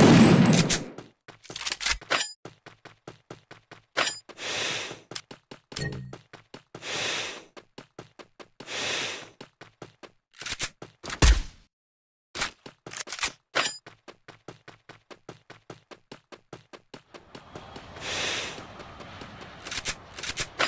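Footsteps run steadily over grass.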